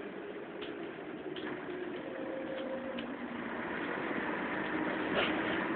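A tram rumbles along steadily, heard from inside.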